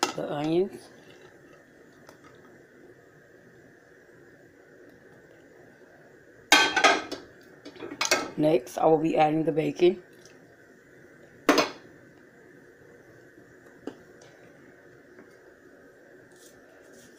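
Chopped vegetables sizzle and bubble softly in a hot pot.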